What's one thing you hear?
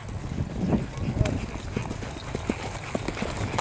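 Horse hooves clop on grass close by.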